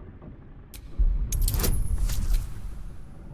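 Dice rattle and tumble.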